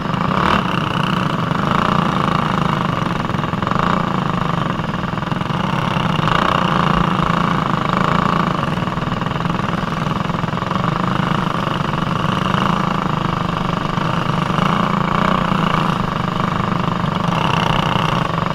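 A small kart engine buzzes loudly close by, rising and falling in pitch as it speeds up and slows down.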